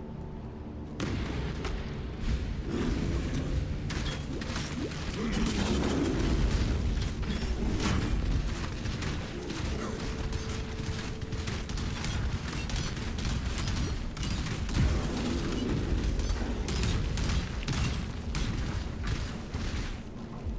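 Magic spells burst and crackle in a fight.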